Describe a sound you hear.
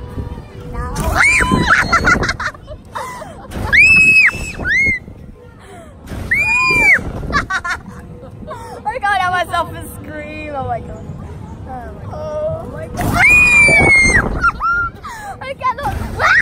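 A young girl screams and laughs loudly close by.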